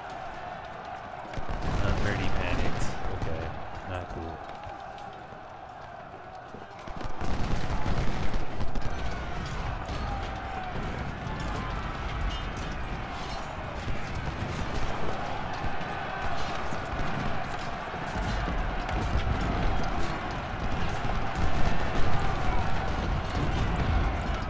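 Musket shots crackle in a distant battle.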